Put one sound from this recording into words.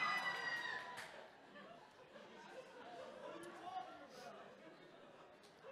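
An audience murmurs softly.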